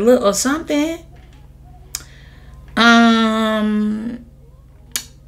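A young woman speaks expressively into a nearby microphone, drawing out some words.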